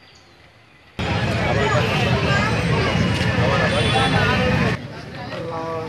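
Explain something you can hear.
A crowd of men and children chatter loudly outdoors.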